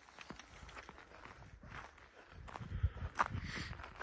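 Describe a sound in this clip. Footsteps crunch on a frozen path.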